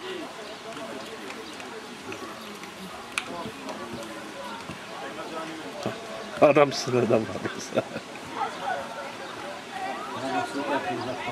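Young men talk and call out across an open field outdoors.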